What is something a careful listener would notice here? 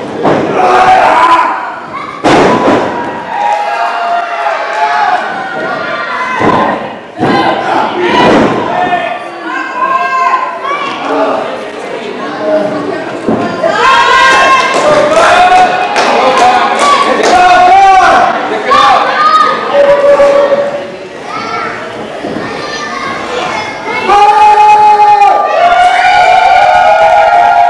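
A crowd in a large hall shouts and cheers loudly.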